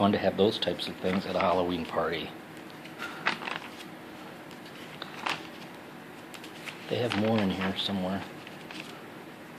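Glossy magazine pages rustle as they are turned.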